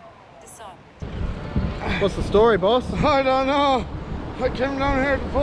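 A man talks excitedly close by.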